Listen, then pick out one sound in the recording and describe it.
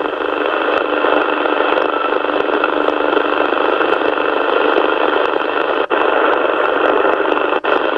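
Static hisses steadily from a radio receiver.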